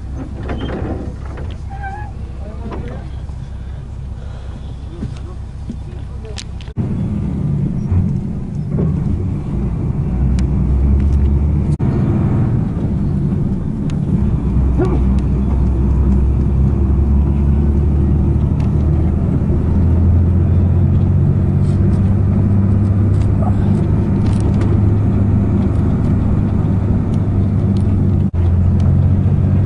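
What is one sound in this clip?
A vehicle engine rumbles steadily from inside a moving vehicle.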